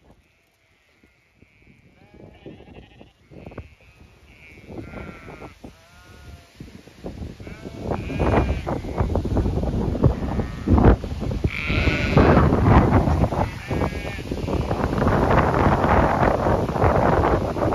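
Sheep bleat.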